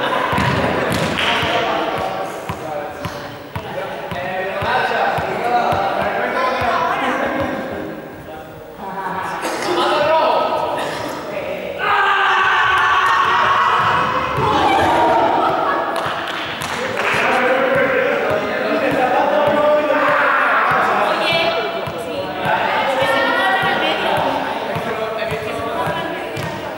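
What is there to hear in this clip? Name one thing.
Young people talk and call out to each other in a large echoing hall.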